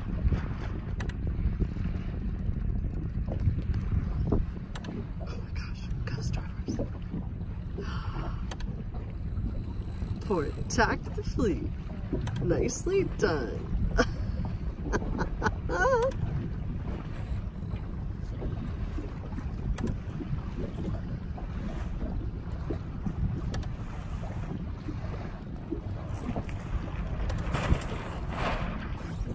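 Small waves lap against an inflatable boat's hull.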